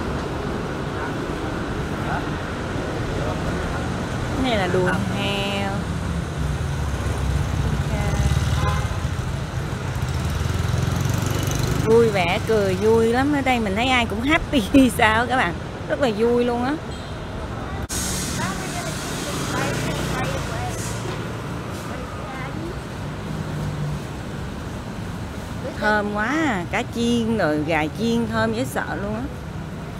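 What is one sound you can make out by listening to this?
A busy street hums with distant traffic outdoors.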